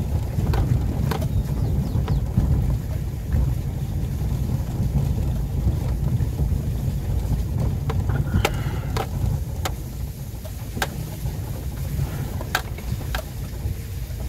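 Raindrops tap now and then on a windshield.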